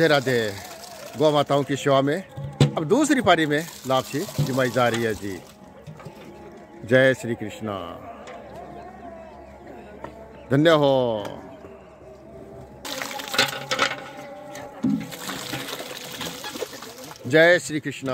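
Grain pours and rustles out of a metal tub into a trough.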